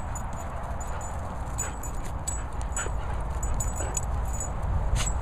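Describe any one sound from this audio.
A dog's paws patter on grass.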